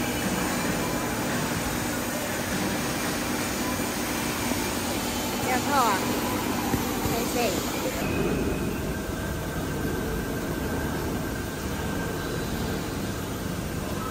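Industrial machinery hums and rumbles steadily nearby.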